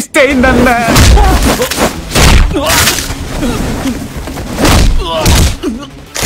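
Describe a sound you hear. Heavy blows and kicks land with loud thuds.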